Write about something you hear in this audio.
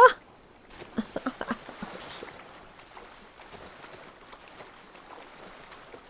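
Water sloshes as a swimmer paddles.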